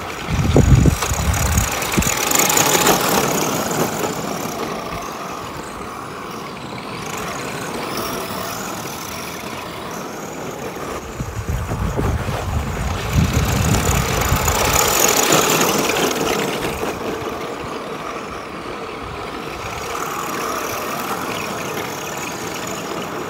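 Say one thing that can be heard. Small electric motors whine as toy cars race around a track.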